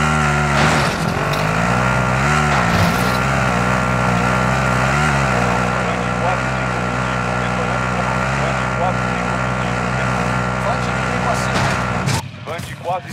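A quad bike engine hums steadily and revs.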